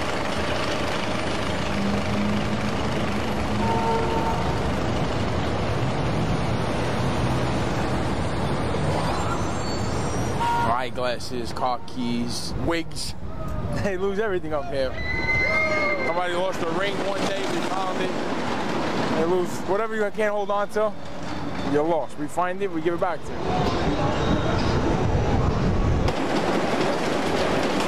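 A roller coaster rumbles and roars along its track.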